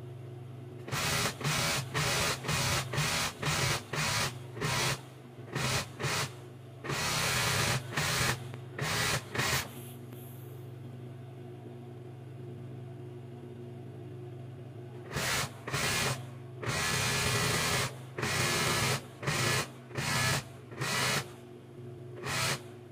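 A sewing machine runs in short, fast whirring bursts.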